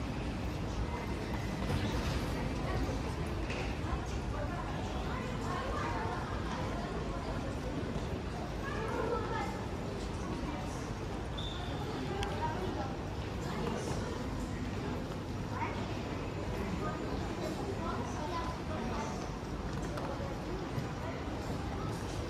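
Voices murmur in a large, echoing hall.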